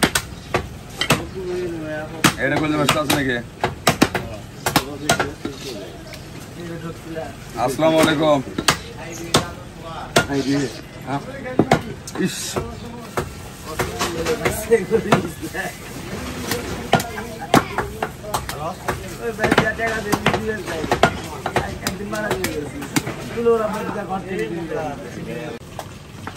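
A cleaver chops through meat onto a wooden block.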